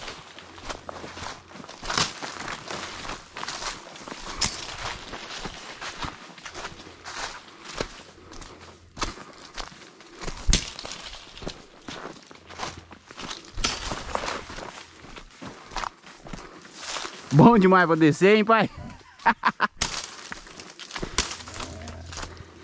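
Footsteps crunch on dry leaves and twigs along a dirt path.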